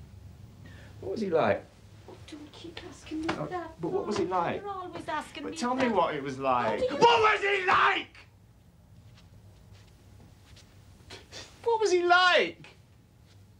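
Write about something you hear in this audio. A middle-aged man shouts with agitation.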